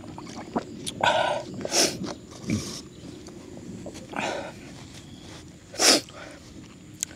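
A man slurps and chews food noisily.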